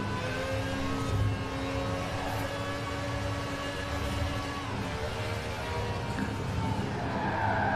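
A sports car engine roars steadily at high speed.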